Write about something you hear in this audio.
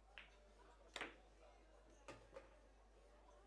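Pool balls clack together and knock into the table's cushions.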